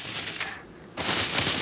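Skis hiss and scrape over snow.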